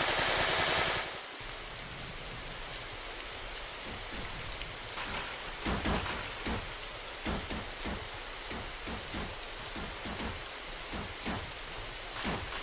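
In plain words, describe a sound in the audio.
Sea waves wash steadily against a sailing ship.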